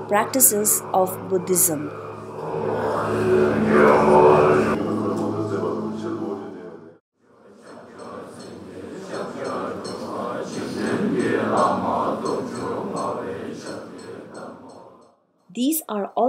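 A group of men chant together in low, droning voices.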